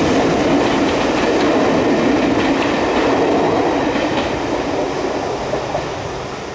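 Railway coaches rumble across a bridge overhead.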